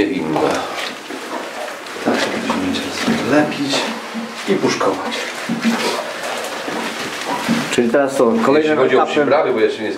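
Minced meat squelches as hands knead it in a plastic tub.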